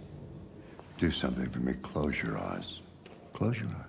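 An elderly man speaks calmly and softly, close by.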